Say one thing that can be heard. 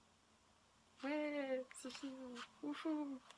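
A young girl speaks up close with animation.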